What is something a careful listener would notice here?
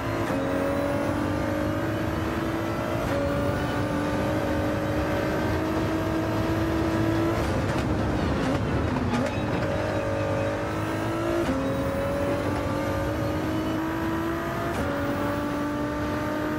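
A twin-turbo V6 race car engine accelerates and shifts up through the gears.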